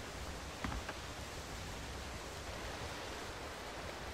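Water laps gently below.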